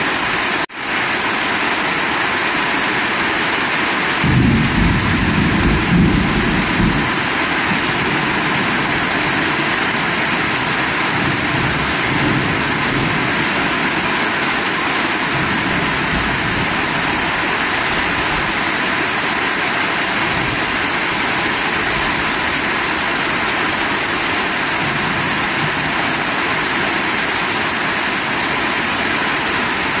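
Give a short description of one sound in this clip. Water streams off a roof edge and splashes onto the ground.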